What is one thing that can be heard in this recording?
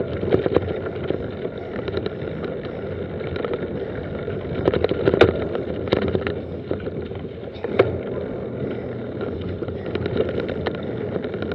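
A mountain bike rattles and knocks over bumps.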